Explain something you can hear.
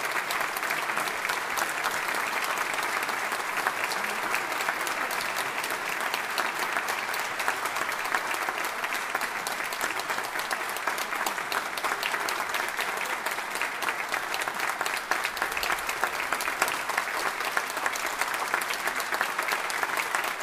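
An audience applauds steadily in a large echoing hall.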